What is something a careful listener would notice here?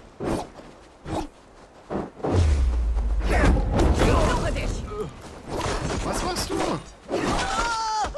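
Swords and axes clash and strike in a fight.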